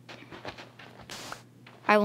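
A block breaks with a short crunch.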